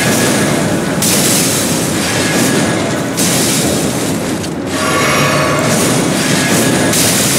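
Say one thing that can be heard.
A sharp magical blast whooshes and rings.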